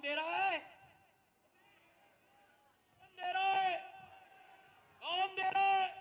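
A young man shouts forcefully through a loudspeaker in short bursts.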